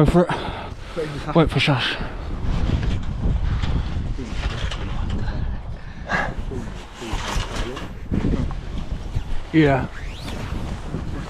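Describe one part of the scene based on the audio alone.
Young men talk and call out to each other nearby.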